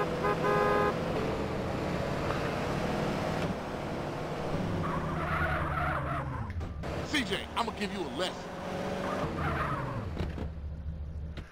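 A car engine hums and revs while driving.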